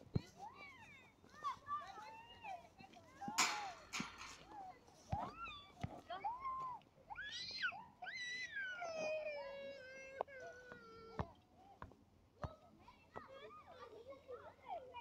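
Cartoon creatures let out short chirping cries.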